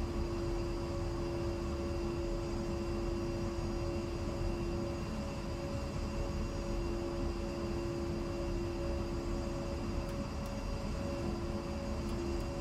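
A jet's engines hum and whine steadily while idling on the ground.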